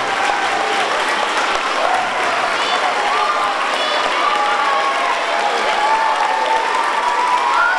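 Women in a crowd cheer and call out.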